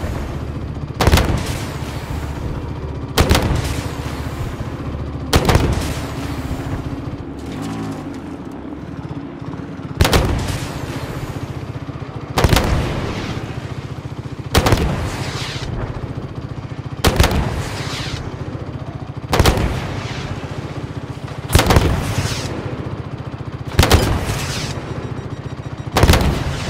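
Loud blasts boom at even intervals.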